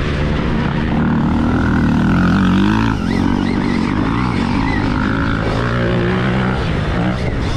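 Another dirt bike engine passes nearby.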